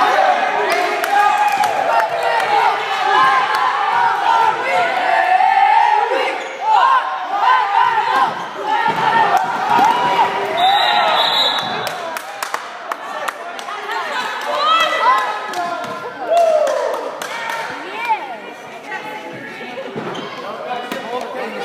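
A crowd of spectators shouts and cheers in an echoing gym.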